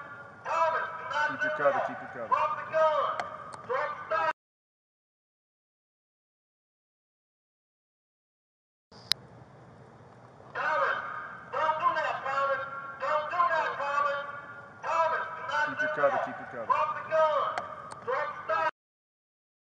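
A man shouts commands loudly, close to the microphone.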